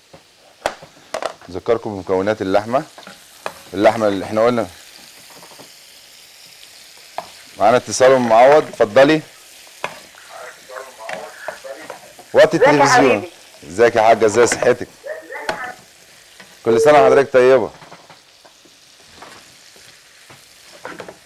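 A metal spoon scrapes and stirs food in a frying pan.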